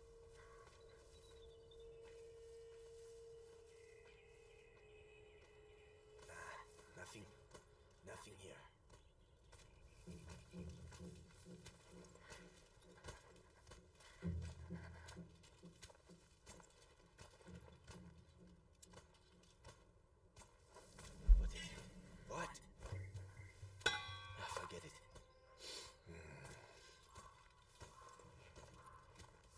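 Dry grass rustles softly as someone creeps through it.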